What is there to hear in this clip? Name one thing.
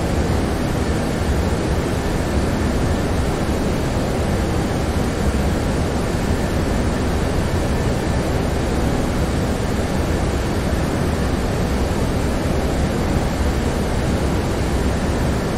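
Jet engines and rushing air roar steadily, heard from inside an aircraft.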